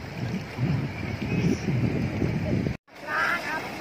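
Small waves lap and splash in shallow water.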